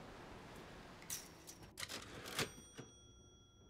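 Soft clicks sound as a menu opens.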